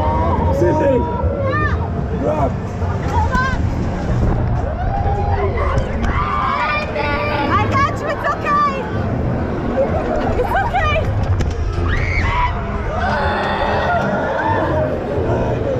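A spinning ride rumbles and rattles steadily.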